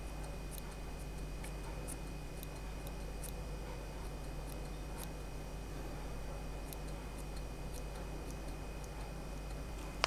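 Small scissors snip softly at fur, again and again.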